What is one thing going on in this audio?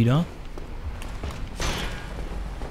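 A sword clangs against a metal shield.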